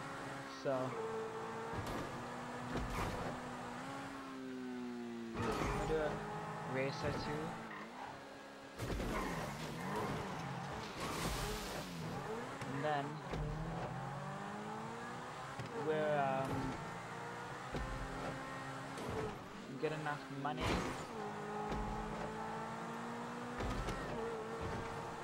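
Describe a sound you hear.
A car engine revs high and shifts pitch up and down as it races.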